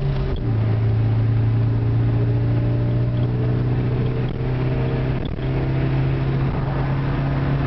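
Tyres roll on smooth asphalt with a steady road noise.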